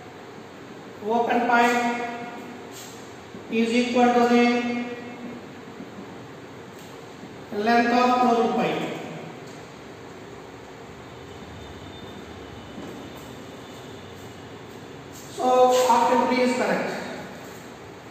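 A man speaks loudly and clearly in an echoing room, in short bursts.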